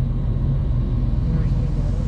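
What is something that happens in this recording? A truck passes close by with a loud whoosh.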